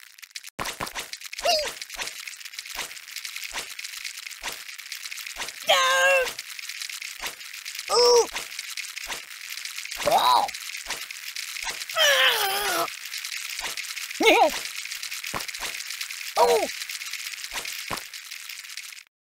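Wind-up toys click and rattle steadily.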